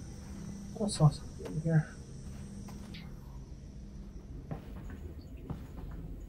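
Footsteps tread on a hard floor and stairs.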